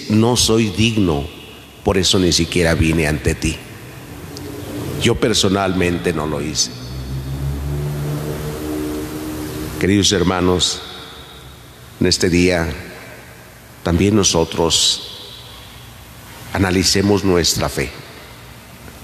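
A man speaks slowly and solemnly through a microphone, echoing in a large hall.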